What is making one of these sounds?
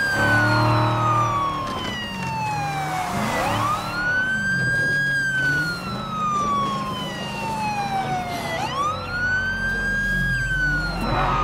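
A police siren wails, rising and falling in long sweeps.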